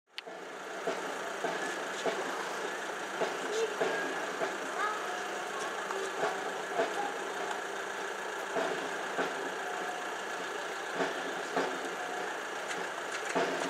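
A van engine hums as it rolls slowly along a street.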